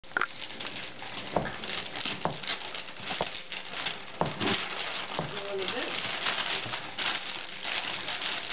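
Wrapping paper crinkles and tears.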